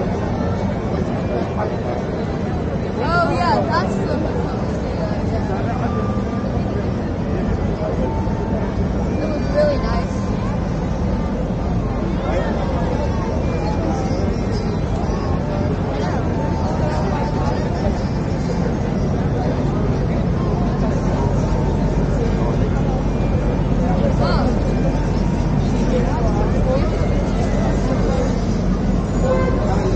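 A busy crowd murmurs and chatters all around outdoors.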